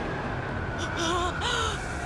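A young boy shouts.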